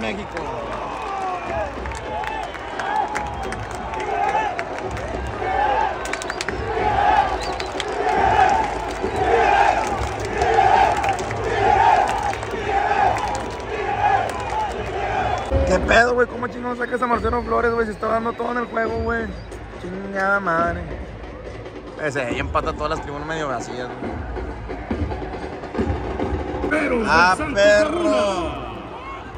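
A crowd murmurs and cheers throughout.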